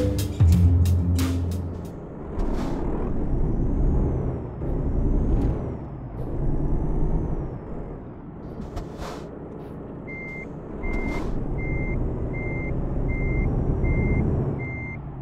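A truck engine rumbles low and steady as the truck drives.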